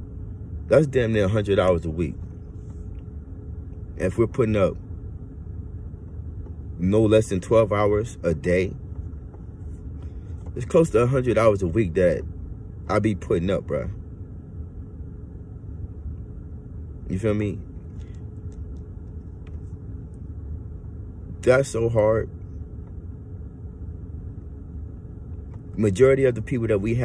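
A man speaks slowly and calmly close to a microphone, pausing between phrases.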